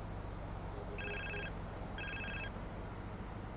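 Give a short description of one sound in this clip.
A mobile phone rings.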